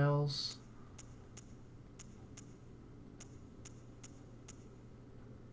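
Soft menu clicks tick in a quick series.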